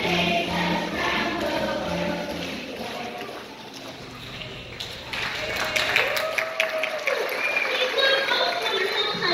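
Children's feet patter and shuffle on a wooden stage.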